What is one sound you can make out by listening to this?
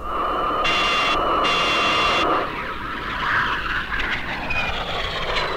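Jet engines roar and whine as aircraft fly past overhead.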